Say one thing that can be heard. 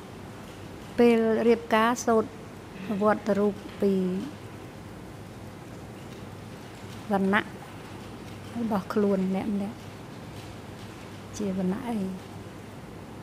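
An elderly woman speaks in short bursts into a microphone.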